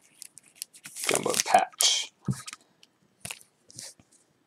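A stiff plastic card sleeve rustles and scrapes between fingers.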